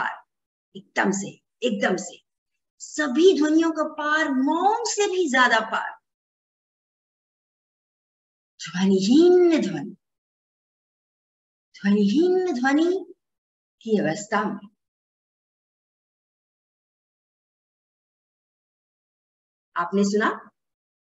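A young woman speaks and sings expressively through an online call, with long pauses.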